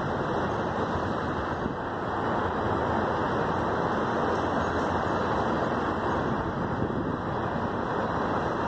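Freight train cars rumble and clatter steadily past on the rails.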